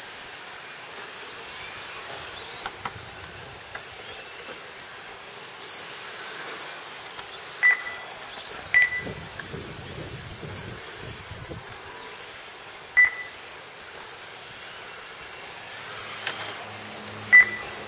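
A small electric motor whines high, rising and falling in pitch as a remote-control car speeds up and slows down.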